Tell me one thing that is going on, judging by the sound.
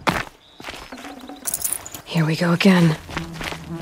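Footsteps crunch on dry dirt and gravel.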